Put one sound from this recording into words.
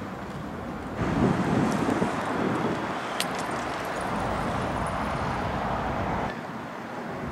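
A heavy vehicle engine rumbles as it drives past.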